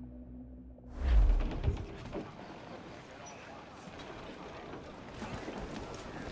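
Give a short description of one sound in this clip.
Waves splash around a sailing ship.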